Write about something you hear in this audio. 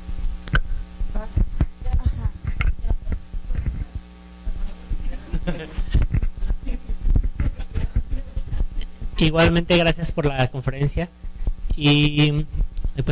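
A woman speaks calmly into a microphone in a large, echoing room.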